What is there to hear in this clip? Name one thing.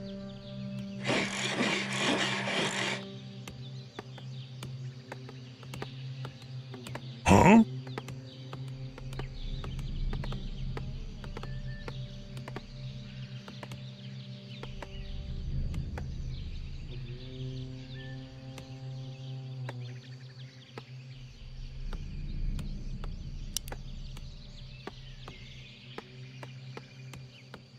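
Short game interface clicks sound repeatedly.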